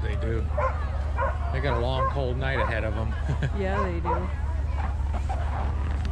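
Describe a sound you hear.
Sled dogs bark and yelp excitedly.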